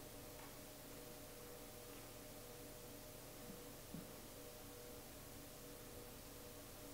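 Bare feet shuffle softly on a wooden floor.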